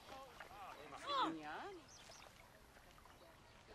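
Water flows gently in a stream.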